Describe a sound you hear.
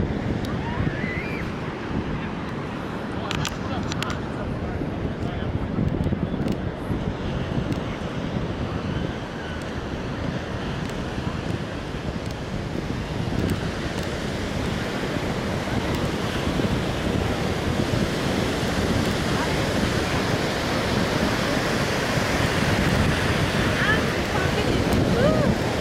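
Ocean waves wash and break on the shore.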